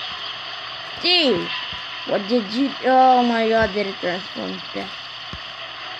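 A boy speaks close to a microphone with animation, his voice rising and falling.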